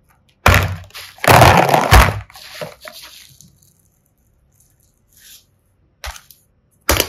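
Plastic toys knock and rattle as a hand handles them.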